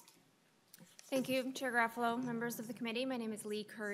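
A woman speaks firmly into a microphone.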